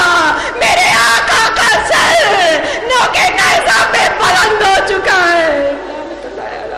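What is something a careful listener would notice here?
A woman cries out a lament loudly and emotionally into a microphone.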